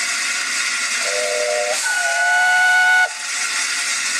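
A steam locomotive's whistle sounds, then cuts off abruptly.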